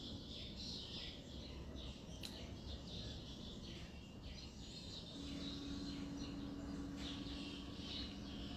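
A young woman speaks calmly, close to the microphone.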